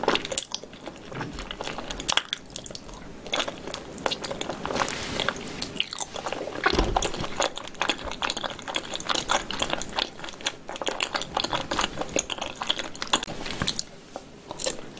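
A young woman chews food close to a microphone with wet, squelching sounds.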